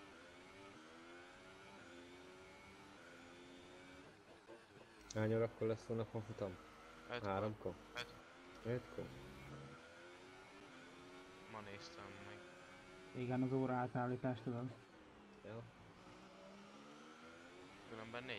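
A racing car engine whines at high revs, rising and falling as the gears shift.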